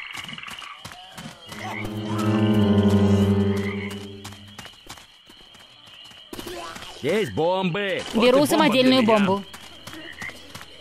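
An assault rifle fires rapid bursts of shots.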